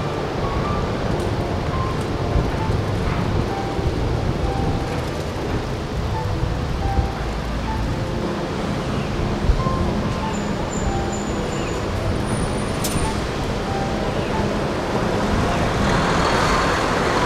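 Traffic hums steadily through a busy intersection.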